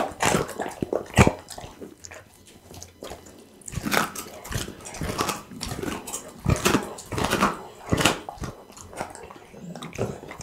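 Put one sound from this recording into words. A dog chews and crunches raw chicken bones close to a microphone.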